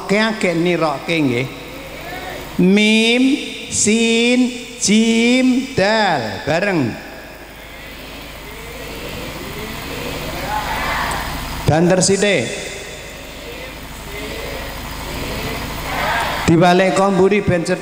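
An elderly man speaks with animation into a microphone, heard through loudspeakers in an echoing hall.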